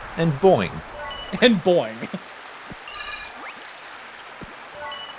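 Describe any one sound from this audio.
A bright chime rings as a game item is collected.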